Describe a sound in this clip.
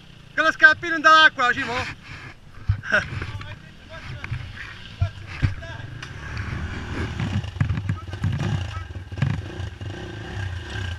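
A dirt bike engine rumbles and revs unevenly close by.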